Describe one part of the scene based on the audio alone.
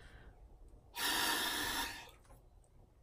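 A woman blows hard into a small tube.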